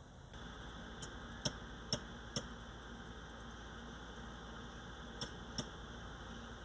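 Metal tools clank and knock against a car.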